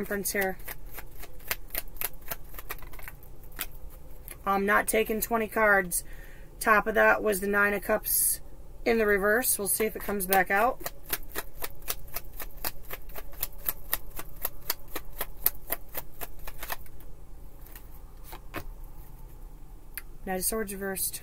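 Playing cards flick and rustle as they are shuffled.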